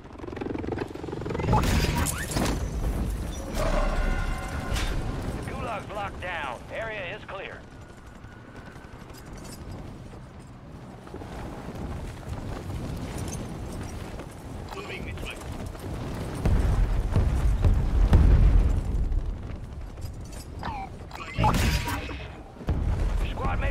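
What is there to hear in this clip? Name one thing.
Wind rushes loudly past a falling parachutist.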